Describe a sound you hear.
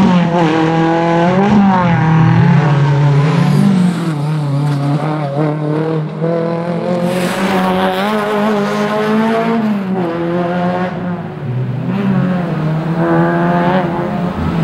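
A car engine roars loudly, revving up and dropping as it shifts gears.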